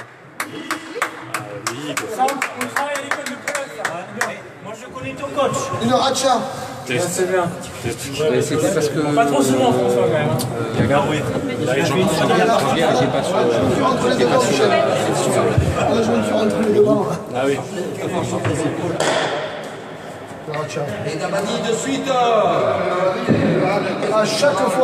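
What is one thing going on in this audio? A ball smacks off a wooden paddle, echoing in a large hall.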